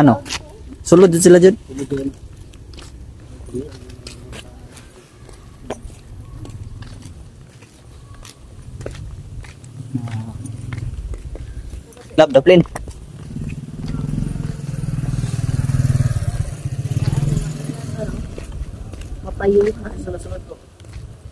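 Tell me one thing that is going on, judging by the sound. Footsteps scuff on a paved path.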